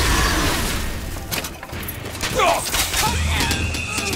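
A fiery explosion bursts with a roar.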